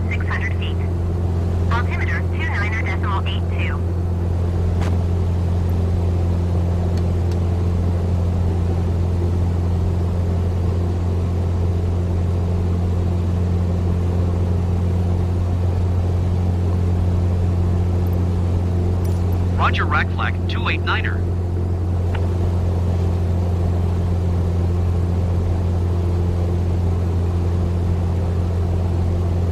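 A small propeller engine drones steadily.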